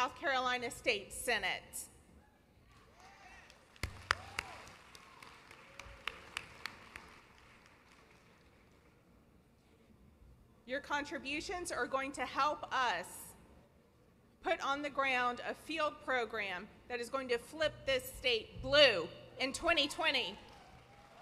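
A young woman speaks calmly through a microphone in a large echoing hall.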